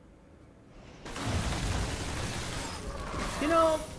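A loud magical whoosh bursts and fades.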